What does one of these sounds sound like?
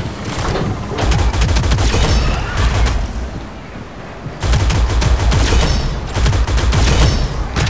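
A rapid-fire gun shoots in quick, loud bursts.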